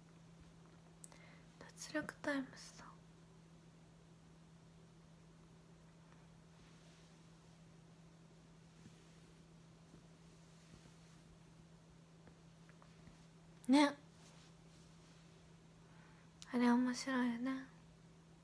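A young woman speaks softly in short bursts, close to a microphone.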